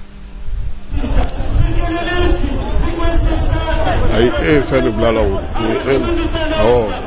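A crowd of people shouts and chants outdoors.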